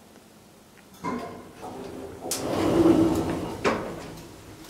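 Elevator doors slide open with a low rumble.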